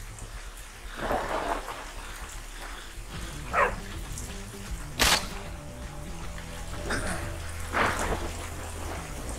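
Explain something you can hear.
A zombie groans.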